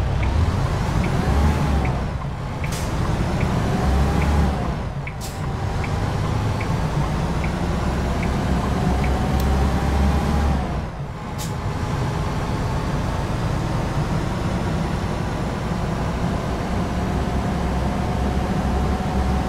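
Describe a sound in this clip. A truck engine rumbles steadily, revving up and dropping off between gear changes.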